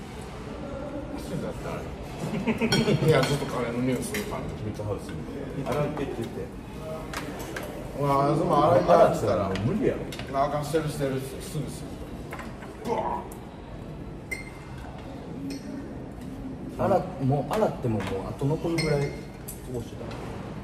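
Young men talk and laugh together close by.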